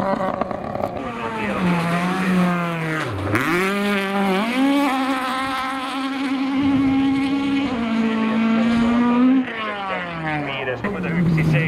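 A rally car engine roars and revs hard as it races past, changing gear.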